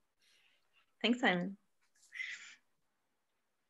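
A young woman laughs over an online call.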